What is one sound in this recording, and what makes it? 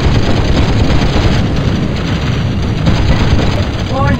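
Explosions and gunfire rattle in quick bursts.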